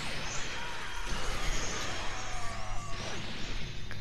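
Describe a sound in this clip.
An energy blast whooshes and crackles loudly.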